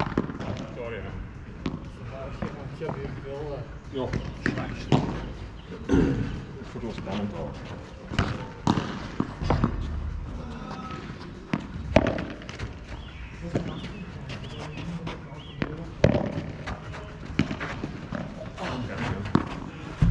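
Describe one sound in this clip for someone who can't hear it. Paddles hit a ball with sharp pops.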